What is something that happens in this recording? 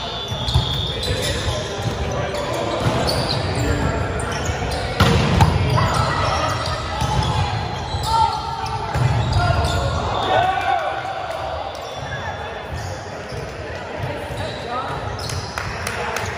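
Young people talk and call out across an echoing hall.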